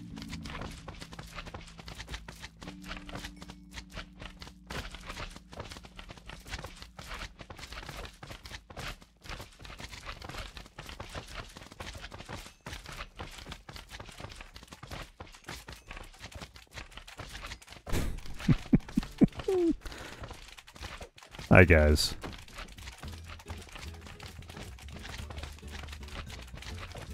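Slimes squelch and bounce repeatedly.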